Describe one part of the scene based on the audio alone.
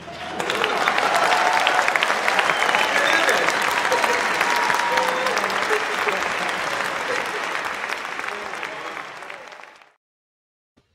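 An orchestra plays loudly in a large hall, then fades out.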